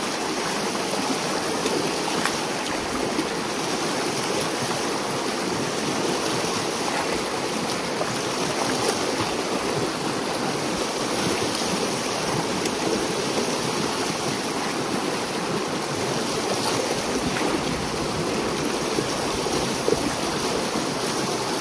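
Water rushes and gurgles steadily through a gap in a dam of sticks and mud.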